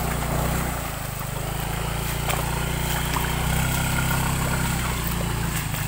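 Water splashes under rolling wheels.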